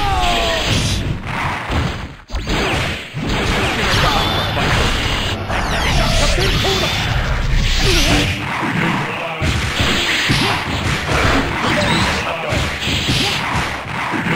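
Fighting game blasts, hits and energy beams crash and whoosh rapidly.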